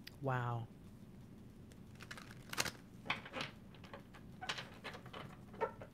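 Playing cards are shuffled with quick, soft flicks.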